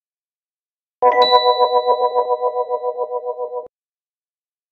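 A music box plays a short, tinkling tune.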